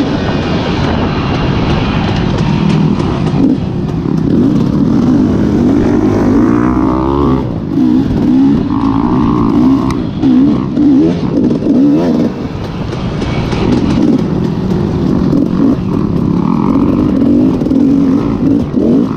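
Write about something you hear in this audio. A dirt bike engine revs up and down close by, shifting pitch constantly.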